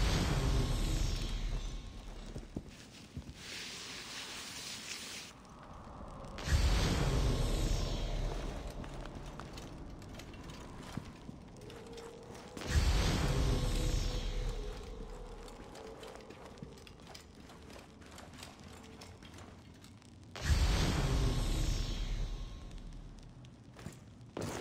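A torch flame crackles and hisses.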